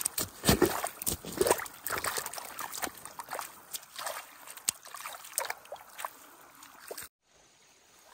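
Water splashes and sloshes as a hand stirs a muddy puddle.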